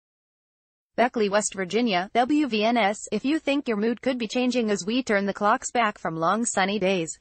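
A young woman speaks clearly and steadily, reading out close to a microphone.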